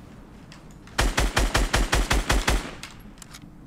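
Rapid gunfire rattles in a quick burst.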